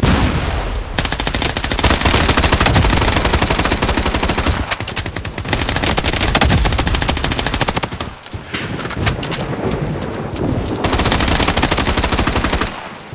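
An automatic rifle fires rapid bursts.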